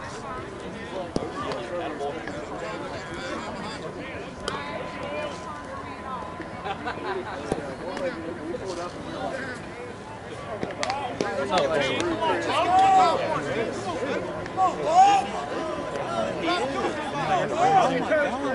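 Men talk and call out across an open field, at a distance.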